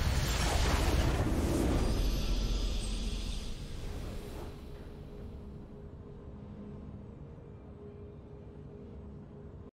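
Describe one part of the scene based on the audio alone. A short fanfare plays softly as a video game match ends.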